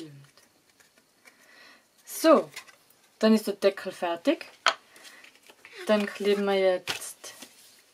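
Paper rustles and crinkles as hands fold it.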